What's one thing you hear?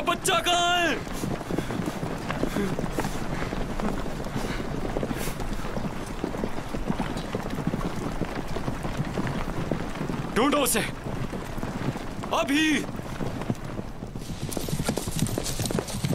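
Horses gallop over the ground.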